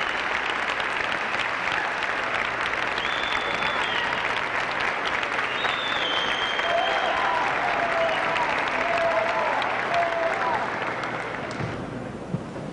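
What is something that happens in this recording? A large crowd applauds loudly in a big echoing hall, then falls quiet.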